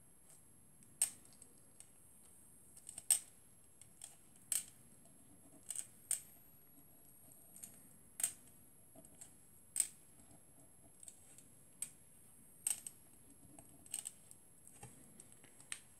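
A small metal tool taps and presses on a paper card.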